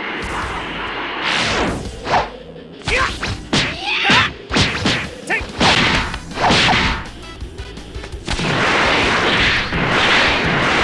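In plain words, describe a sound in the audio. Rushing whooshes sweep past as game fighters dash through the air.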